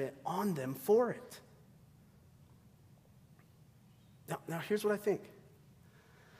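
A man speaks into a microphone in a large echoing hall, pausing between phrases.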